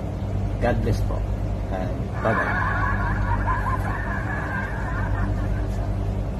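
A middle-aged man sings close to a microphone.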